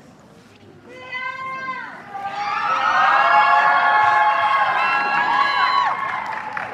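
A group of singers sings together.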